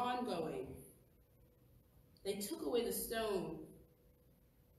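A woman speaks calmly into a microphone in a large echoing room.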